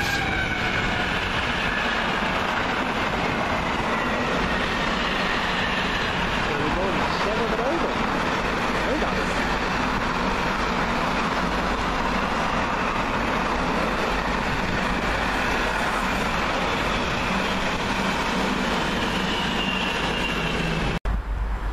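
A long freight train rumbles and clatters past on the rails, then fades away.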